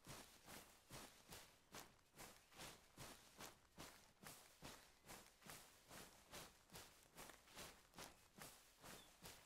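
Footsteps crunch quickly through brush and dry grass at a running pace.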